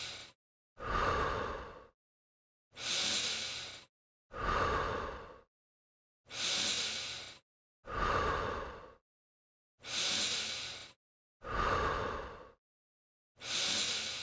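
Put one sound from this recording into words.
A man breathes in and out heavily in a steady rhythm.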